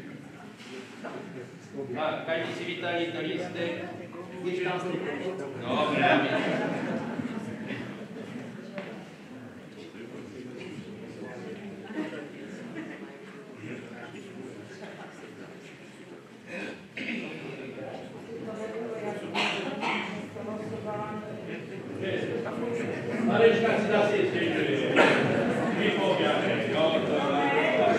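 A man speaks with animation into a microphone in an echoing hall.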